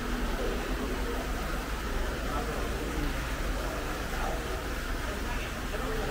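Water pours and splashes steadily into a pond.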